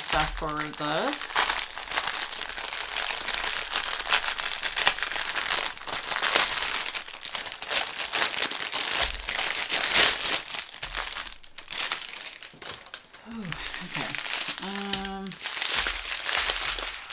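Plastic packaging crinkles and rustles as it is handled close by.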